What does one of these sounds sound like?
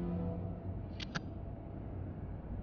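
Keys clatter on a computer keyboard.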